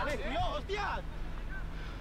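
A man shouts angrily on an open field.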